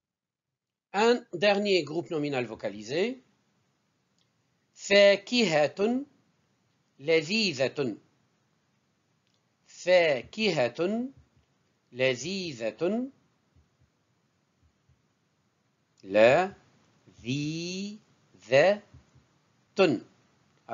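A middle-aged man speaks calmly and clearly into a close microphone, pronouncing words slowly in short bursts with pauses.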